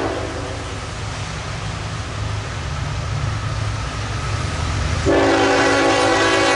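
A train rumbles as it approaches.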